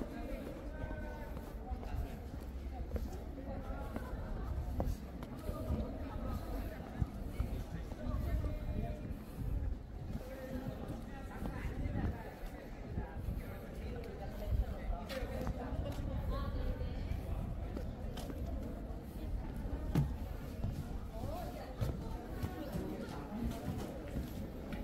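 People chat quietly at a distance outdoors.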